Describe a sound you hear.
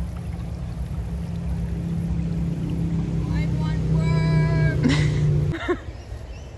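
Water flows and gurgles over rocks in a creek.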